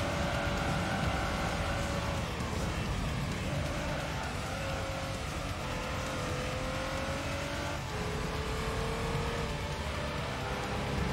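A racing car engine whines steadily, its pitch dropping sharply with gear changes.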